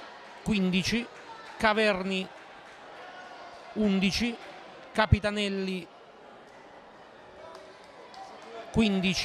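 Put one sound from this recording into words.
A group of young men chant loudly in short bursts in a large echoing hall.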